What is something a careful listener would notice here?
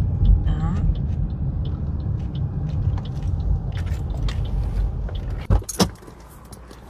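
Car tyres hum on the road.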